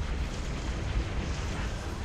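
A waterfall roars nearby.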